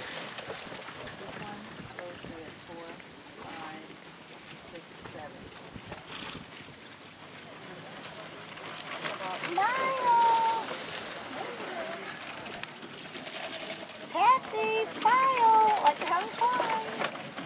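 Carriage wheels roll and rattle over sand.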